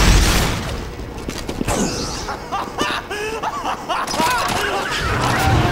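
Gunfire rattles in quick shots.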